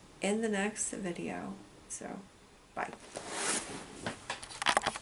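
A middle-aged woman talks brightly and close to a microphone.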